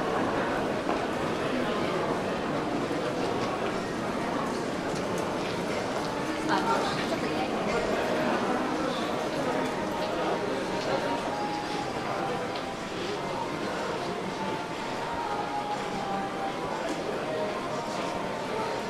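Footsteps shuffle and tap on a hard floor.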